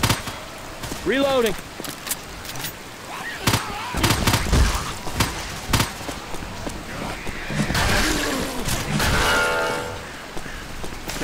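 A zombie growls and shrieks.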